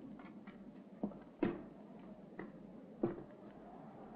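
A bottle knocks on a wooden table.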